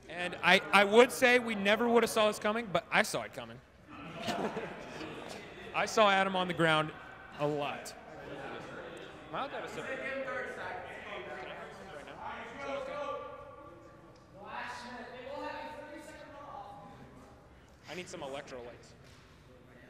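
Young men talk and laugh nearby in a large echoing hall.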